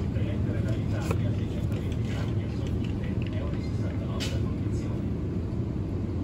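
A hand picks up a plastic yogurt cup from a shelf.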